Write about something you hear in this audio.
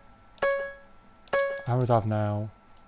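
A bright chime rings twice from a video game.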